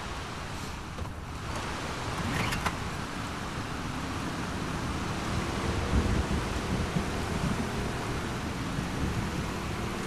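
Water sloshes as a small boat glides along.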